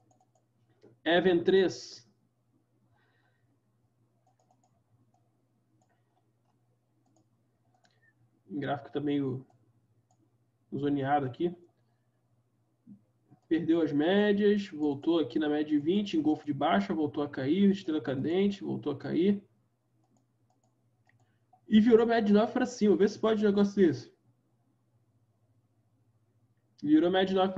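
A young man talks calmly into a nearby microphone, in short bursts with pauses.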